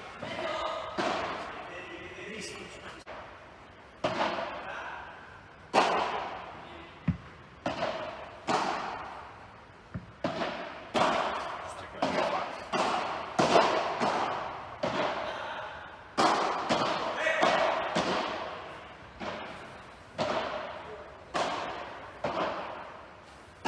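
Paddle rackets strike a ball with sharp pops that echo around a large covered hall.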